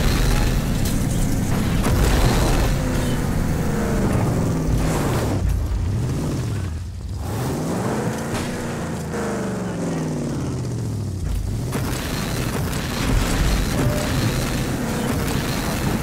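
Branches and leaves crash and scrape against a car.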